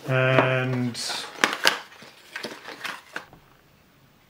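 Cardboard packaging rustles and scrapes as it is handled.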